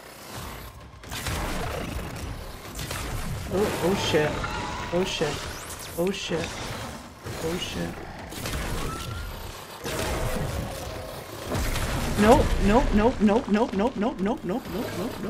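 Blasts and clashing bursts of a fight in a game ring out.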